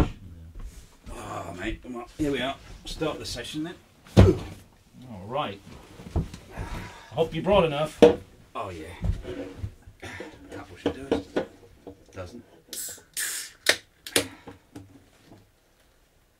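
A middle-aged man talks casually nearby.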